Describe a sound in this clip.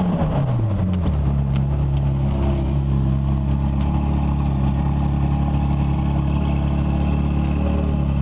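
A sports car engine idles with a deep, steady rumble close by.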